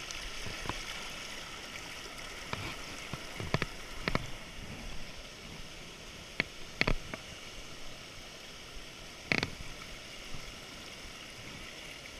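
A shallow stream rushes and splashes over rocks close by.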